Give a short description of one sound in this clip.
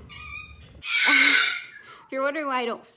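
A young woman laughs and talks close by.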